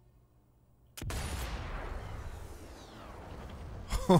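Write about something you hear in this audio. A rifle shot cracks loudly and echoes.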